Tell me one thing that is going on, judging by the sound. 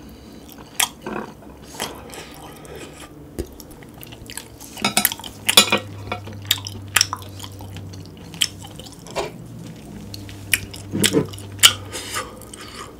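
A man chews and smacks his lips wetly, very close to a microphone.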